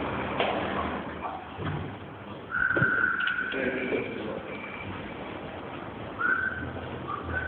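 A man talks loudly nearby in an echoing space.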